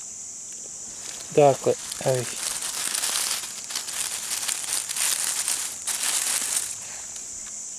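Dry leaves rustle and crackle as mushrooms are picked from the ground.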